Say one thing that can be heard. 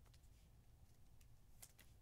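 A plastic sleeve crinkles in someone's hands.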